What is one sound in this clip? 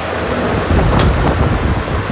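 A fan's button clicks once.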